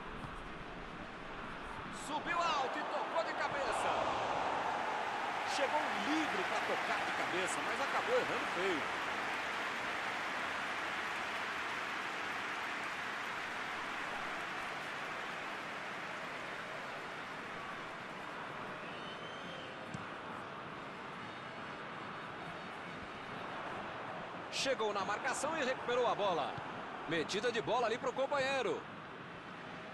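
A stadium crowd roars and cheers loudly, then slowly settles.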